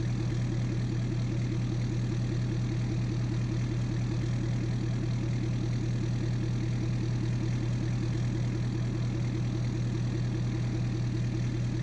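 A diesel engine idles with a steady, throbbing rumble.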